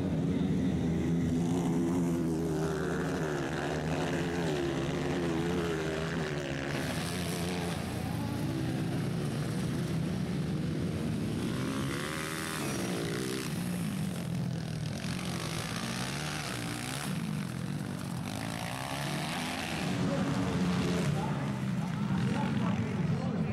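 Motorcycle engines rev loudly and roar past, their pitch rising and falling.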